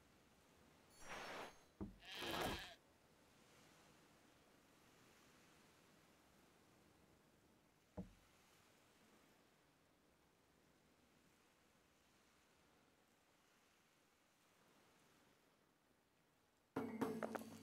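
A game's interface plays short chimes as a trade menu opens and closes.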